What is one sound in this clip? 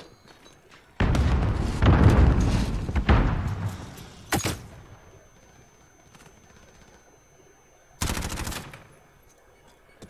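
Gunfire bursts loudly in a video game.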